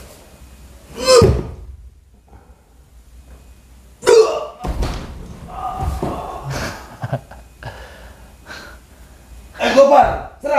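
A body thumps and rolls on a tiled floor.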